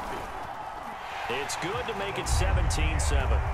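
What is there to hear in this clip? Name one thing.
A stadium crowd cheers loudly.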